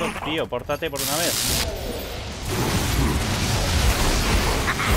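A magic blast roars with a rushing hiss.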